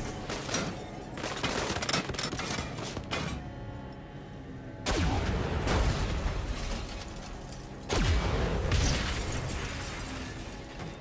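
A heavy tank engine rumbles.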